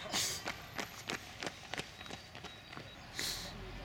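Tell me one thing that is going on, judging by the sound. A runner's footsteps slap on the pavement.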